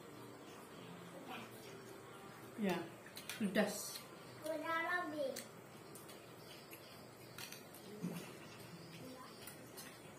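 A fork and spoon clink on a plate.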